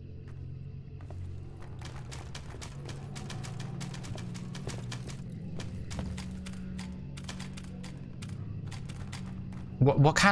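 Footsteps tap down wooden stairs.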